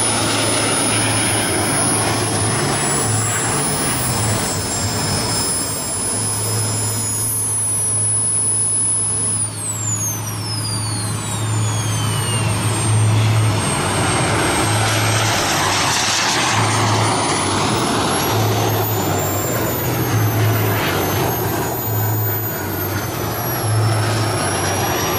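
A jet engine roars overhead, its pitch rising and falling as it passes.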